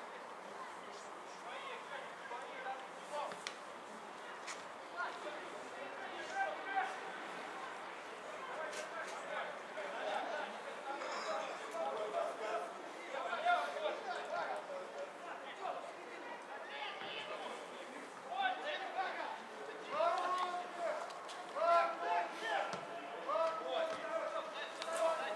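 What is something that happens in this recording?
Young men shout to each other across an open outdoor field.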